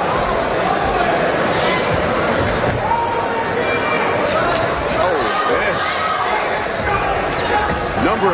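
A crowd cheers and murmurs throughout in a large hall.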